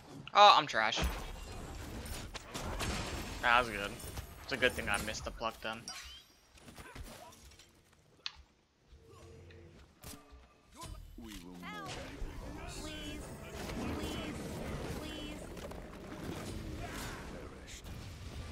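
Game sound effects of magic blasts and hits crackle and whoosh.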